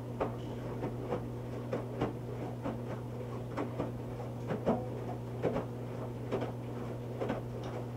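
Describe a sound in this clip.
Wet laundry thumps and sloshes inside a turning washing machine drum.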